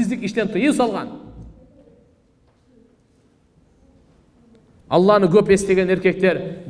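A middle-aged man speaks calmly and steadily into a close microphone, with pauses.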